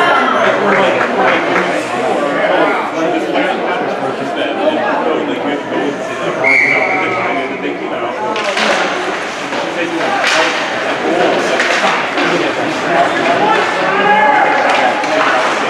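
A crowd of spectators chatters and calls out in a large echoing rink.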